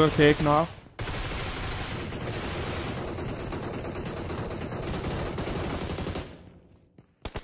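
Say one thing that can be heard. Gunshots crack from a game.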